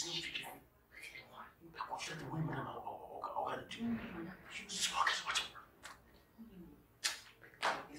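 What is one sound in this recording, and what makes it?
A man murmurs and grumbles nearby.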